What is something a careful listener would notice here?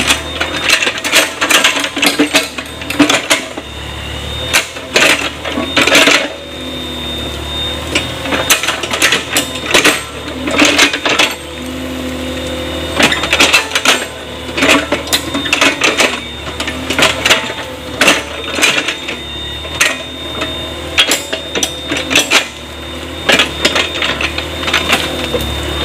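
Wet mud and clods thump and splash as a digger bucket scoops and dumps them.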